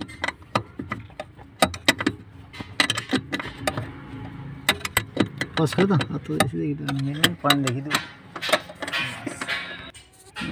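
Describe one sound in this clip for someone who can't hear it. Plastic parts click and rattle as a hand handles them up close.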